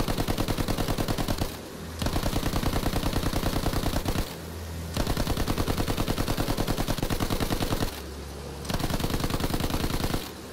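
A machine gun fires in long rapid bursts.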